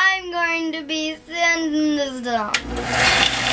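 A young girl speaks cheerfully nearby.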